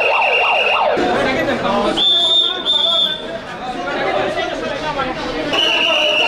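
Several men talk in agitated voices close by.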